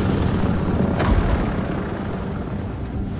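Bombs splash into the sea with a thud.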